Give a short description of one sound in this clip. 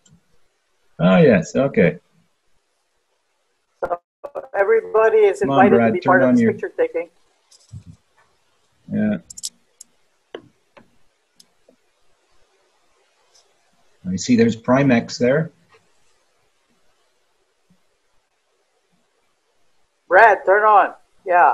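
Adults talk in turn over an online call, in short bursts with pauses.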